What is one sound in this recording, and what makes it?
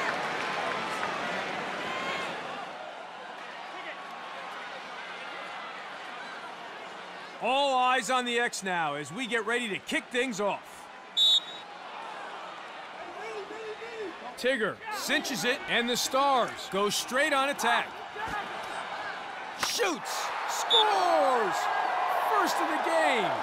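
A large crowd murmurs and cheers in a stadium.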